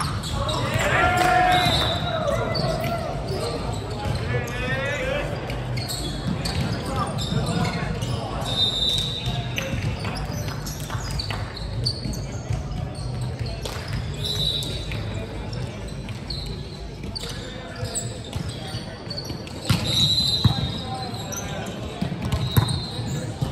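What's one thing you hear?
Players call out and shout to each other in a large echoing hall.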